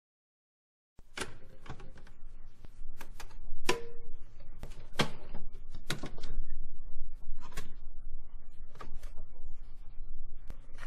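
Crackles and pops come from an old gramophone record playing.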